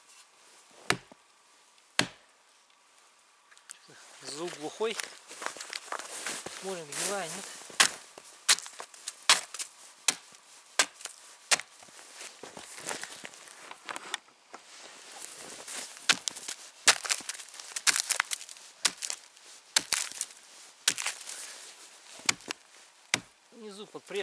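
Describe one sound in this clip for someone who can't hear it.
An axe chops into a tree trunk with sharp knocks.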